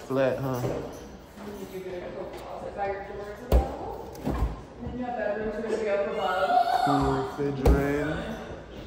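A refrigerator door opens and shuts with soft thuds.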